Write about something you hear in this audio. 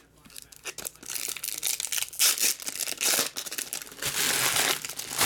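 Foil wrappers crinkle and rustle up close.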